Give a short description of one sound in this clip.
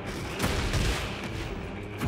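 A sword slashes and clangs.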